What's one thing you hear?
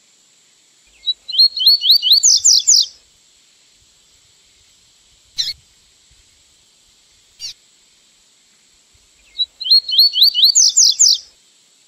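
A small bird sings a quick run of bright, rising whistled notes, twice with a pause between.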